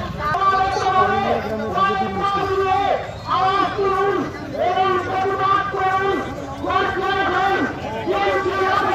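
A crowd of men chants slogans loudly in rhythm outdoors.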